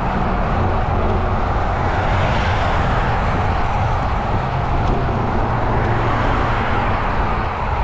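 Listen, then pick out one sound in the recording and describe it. Tyres roll steadily on asphalt as a vehicle drives along a road.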